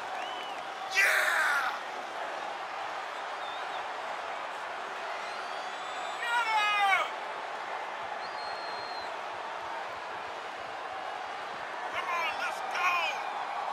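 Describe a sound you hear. Fans in a crowd whistle and shout loudly in short bursts.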